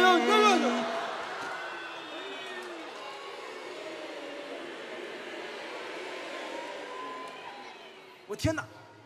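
A large audience laughs and applauds in a big hall.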